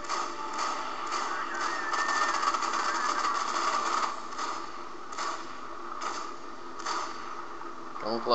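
A laser weapon fires in short repeated bursts.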